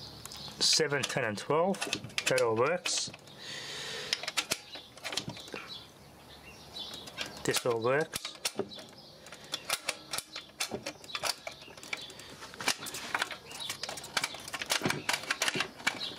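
Plastic levers on a record player click and clack as they are pushed.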